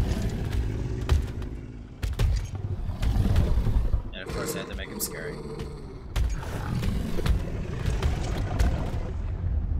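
A large beast growls and snarls.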